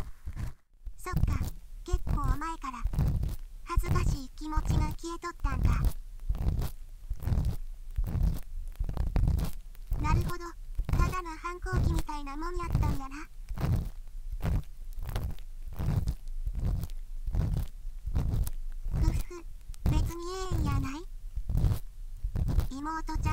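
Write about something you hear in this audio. A young woman's voice speaks gently and cheerfully.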